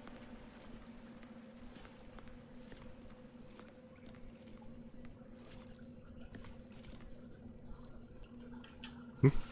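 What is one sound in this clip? Footsteps scrape softly on stone.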